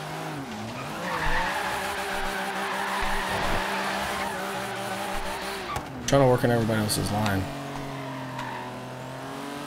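Car tyres screech while sliding.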